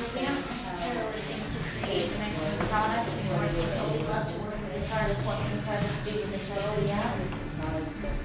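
A cloth rubs and squeaks across a chalkboard.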